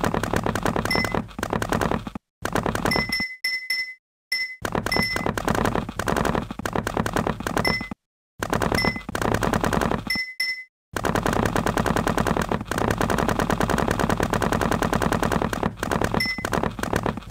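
Short game beeps sound as blocks are placed.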